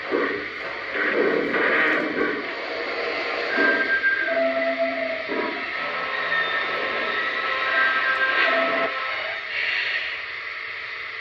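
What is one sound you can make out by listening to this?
A model steam locomotive chuffs rhythmically as it rolls slowly along the track.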